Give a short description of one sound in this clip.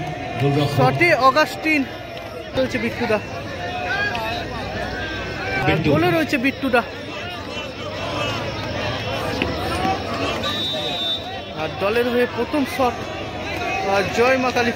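A large outdoor crowd chatters and shouts with excitement.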